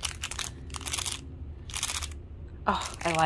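A plastic bag crinkles close by.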